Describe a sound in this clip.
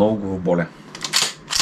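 A man speaks briefly and calmly, close by.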